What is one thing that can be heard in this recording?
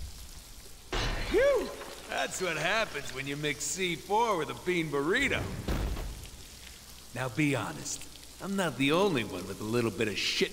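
A man speaks with sarcastic animation, close by.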